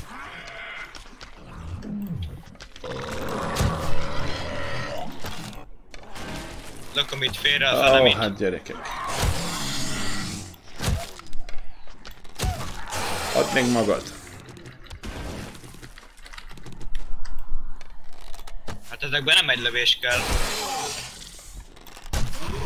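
A zombie growls and snarls close by.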